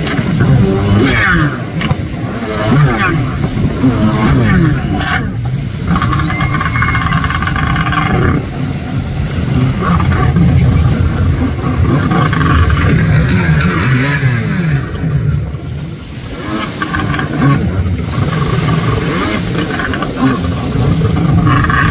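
Water splashes and sprays as a jet ski hits the waves.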